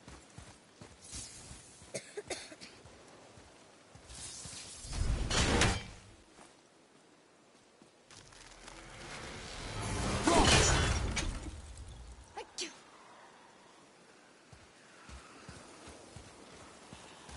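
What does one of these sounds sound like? Heavy footsteps tread through grass.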